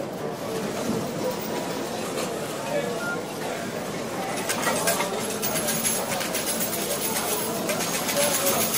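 A crowd of people murmurs and chatters in a large, busy hall.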